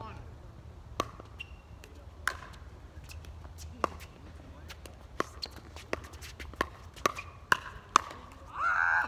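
Paddles pop sharply against a plastic ball outdoors.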